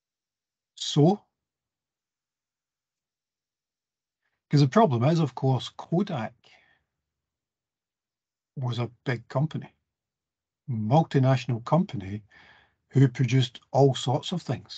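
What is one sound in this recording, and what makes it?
A middle-aged man speaks calmly over an online call, in short bursts with pauses.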